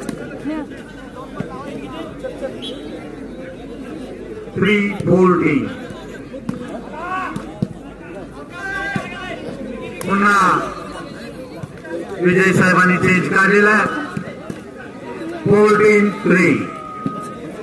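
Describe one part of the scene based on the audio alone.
Young men shout loudly to each other outdoors.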